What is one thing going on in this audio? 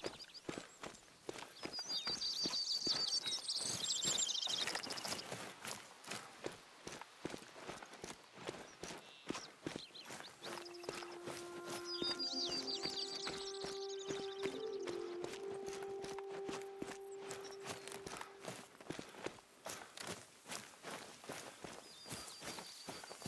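Footsteps crunch over stones and grass.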